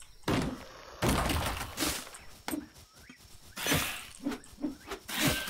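An axe chops into wood with sharp, repeated thuds.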